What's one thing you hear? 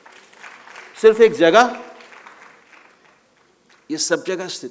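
An elderly man speaks with animation through a microphone in a large hall.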